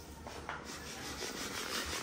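A tool scrapes across a hard floor.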